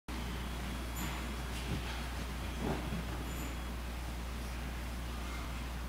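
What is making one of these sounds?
A man's footsteps shuffle softly on a wooden floor.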